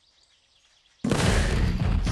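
A cartoonish explosion booms.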